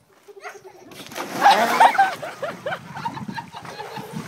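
Water splashes loudly as a man steps into a pool.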